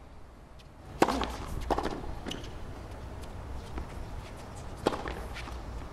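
A tennis ball is struck hard with a racket, back and forth across a court.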